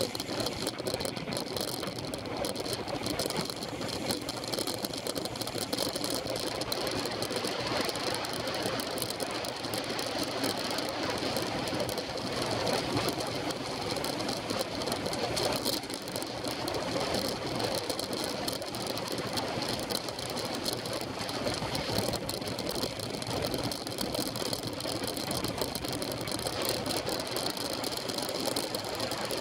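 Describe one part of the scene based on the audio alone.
Bicycle tyres hum steadily on smooth asphalt.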